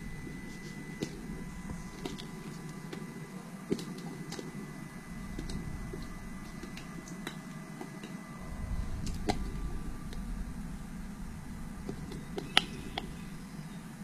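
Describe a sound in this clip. Light knocks and clicks sound as a plastic cup is handled on a table.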